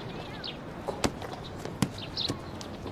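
A basketball bounces on pavement.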